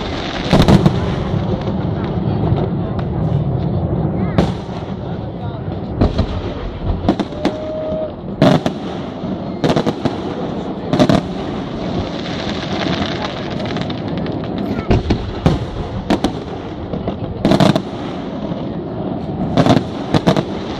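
Fireworks crackle and hiss as the sparks fall.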